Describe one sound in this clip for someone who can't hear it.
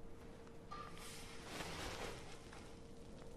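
A heavy fur coat rustles as it is pulled out.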